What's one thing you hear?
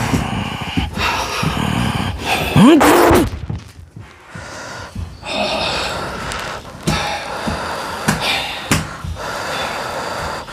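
A man talks with animation into a microphone, close by.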